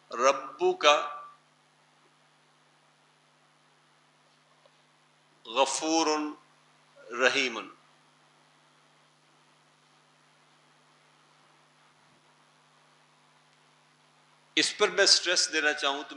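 An elderly man speaks calmly into a headset microphone, in short bursts.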